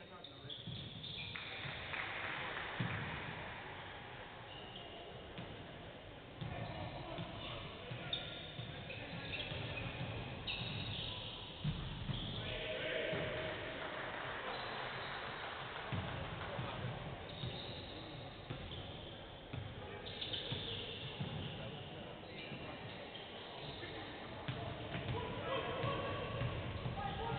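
Sneakers squeak sharply on a hardwood court, echoing in a large hall.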